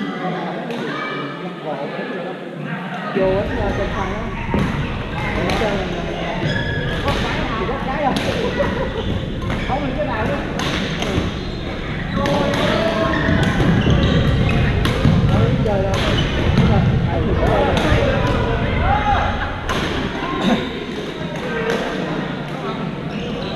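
Men call out and chat with one another across the hall.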